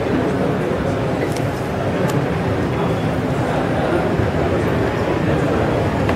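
A car engine hums as a car rolls slowly past.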